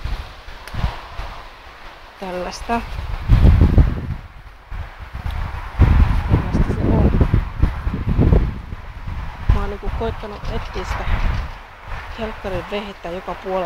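Wind gusts rustle through leafy trees outdoors.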